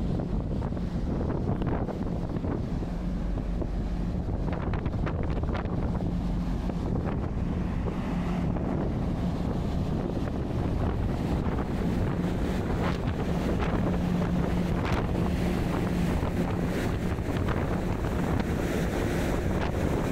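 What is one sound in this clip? A ship's engine hums low and steadily.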